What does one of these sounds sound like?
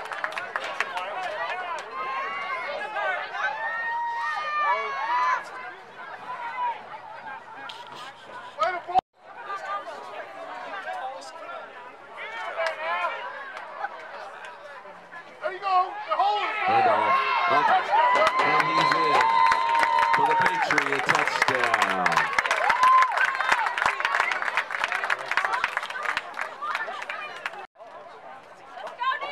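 Young boys shout and call out outdoors.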